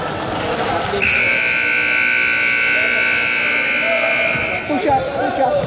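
A loud buzzer sounds steadily.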